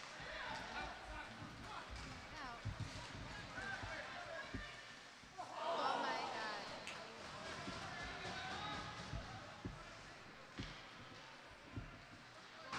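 A crowd cheers and shouts in a large echoing arena.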